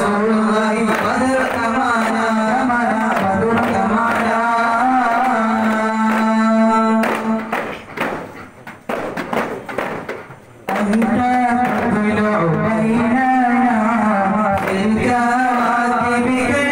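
Frame drums are struck in a steady rhythm.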